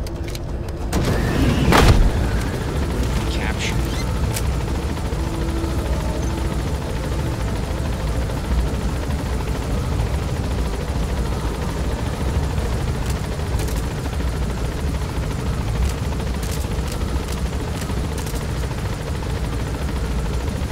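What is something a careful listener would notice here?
Wind rushes in through an open helicopter side door.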